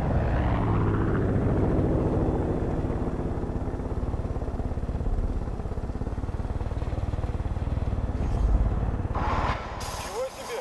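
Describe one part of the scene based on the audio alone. A helicopter engine and rotor thump loudly and steadily, then cut off.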